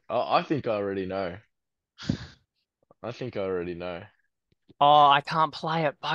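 Men laugh over an online call.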